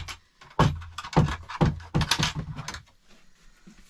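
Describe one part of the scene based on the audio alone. Wood knocks and clatters against a wall.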